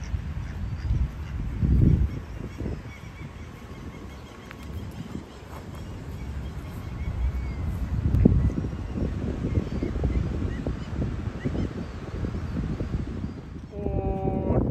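Wind gusts across the microphone outdoors.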